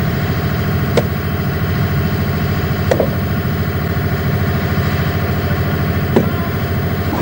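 Metal clangs sharply as a hammer strikes a rail spike.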